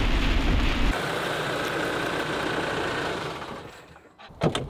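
A vehicle engine idles close by and then stops.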